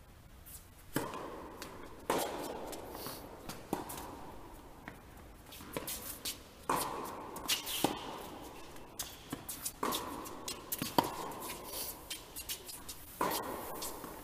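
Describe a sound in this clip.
Tennis balls are struck with sharp pops that echo around a large hall.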